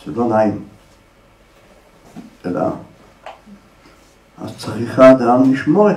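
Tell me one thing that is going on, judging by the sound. An elderly man speaks with animation into a microphone, pausing between phrases.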